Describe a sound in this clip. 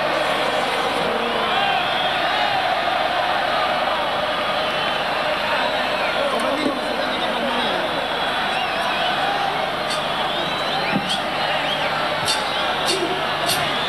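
A huge crowd cheers and screams steadily in a large echoing arena.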